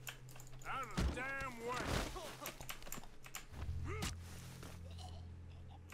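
Fists thud in a brawl.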